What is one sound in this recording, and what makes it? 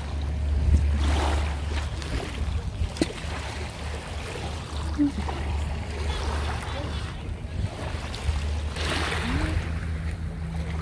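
An elderly woman speaks briefly nearby.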